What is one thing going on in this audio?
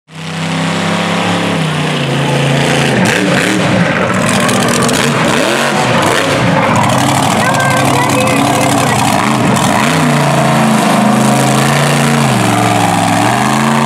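A monster truck engine roars and revs as the truck tears through dirt.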